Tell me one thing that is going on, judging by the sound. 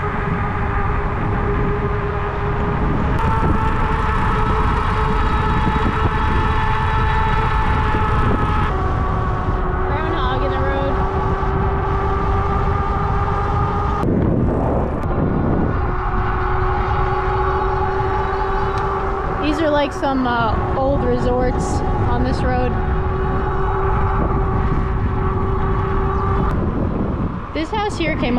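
Bike tyres hum on asphalt.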